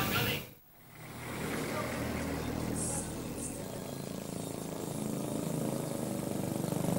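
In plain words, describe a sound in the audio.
A motorcycle engine hums as it rides closer along a street.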